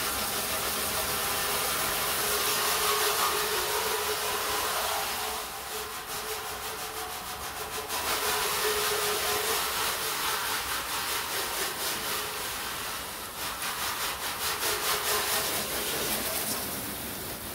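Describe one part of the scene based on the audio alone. Water sprays from a hose nozzle with a steady hiss and patters on a metal panel.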